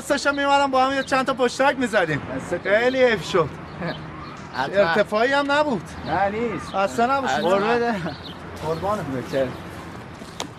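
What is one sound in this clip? Young men shout angrily at each other close by.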